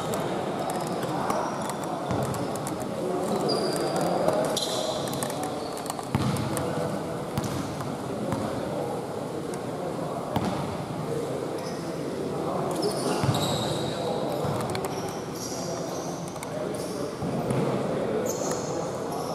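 Sneakers squeak on a hall floor.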